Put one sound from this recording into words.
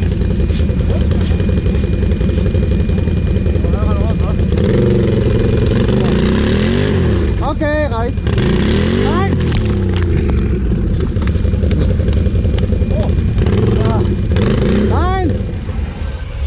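A quad bike engine revs hard, rising and falling.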